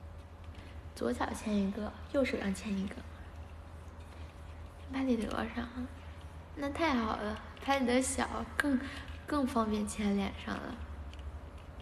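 A young woman talks casually and close by.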